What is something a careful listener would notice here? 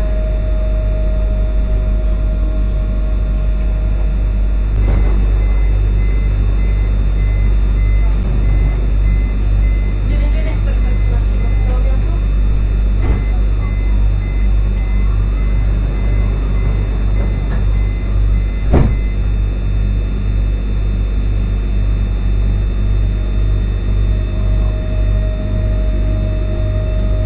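A tram rumbles low and steadily.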